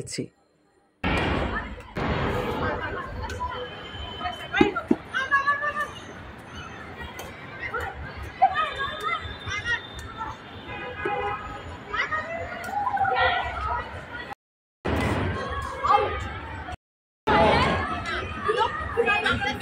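Girls shout and call out to each other outdoors.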